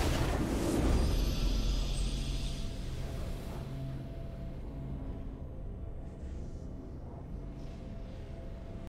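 A triumphant video game victory tune plays and slowly fades.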